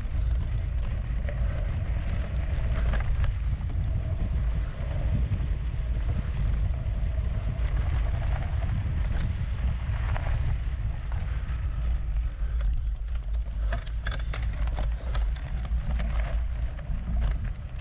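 Wind rumbles heavily across a microphone outdoors.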